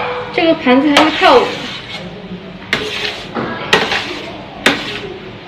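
Metal tongs clink and scrape against a metal tray.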